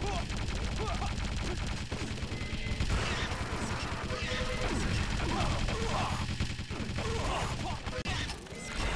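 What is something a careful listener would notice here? Weapons fire rapidly in quick bursts.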